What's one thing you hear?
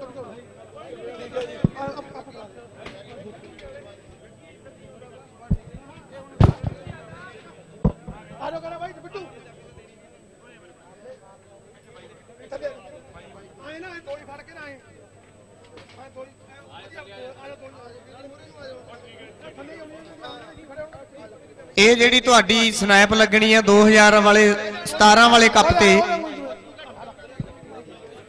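A crowd of men chatters and murmurs around.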